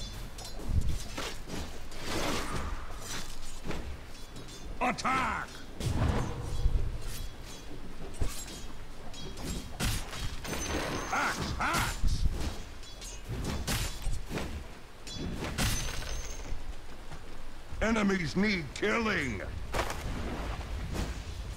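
Game combat effects clash and crackle with sharp hits and magical blasts.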